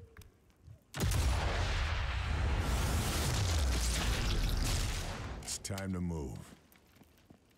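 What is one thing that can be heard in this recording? A rifle fires a loud shot that rumbles and slowly dies away.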